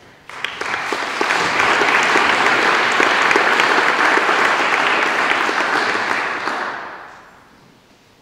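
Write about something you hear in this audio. An audience applauds in a large echoing hall, then fades out.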